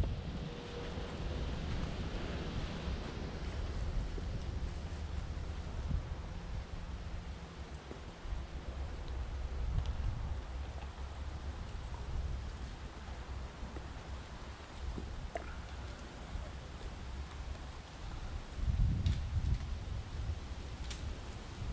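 Wind blows through the trees outdoors, rumbling steadily.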